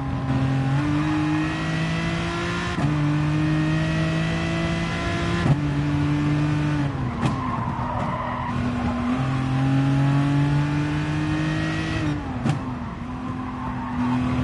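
A racing car engine roars, rising in pitch through the gears and dropping sharply at each gear change.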